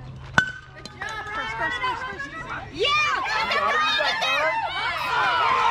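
A crowd of people cheers and shouts outdoors.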